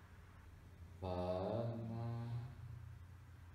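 A man speaks calmly in a low, soothing tone close by.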